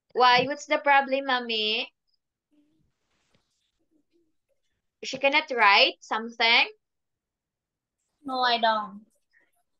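A young woman speaks clearly and with animation over an online call, in short phrases with pauses.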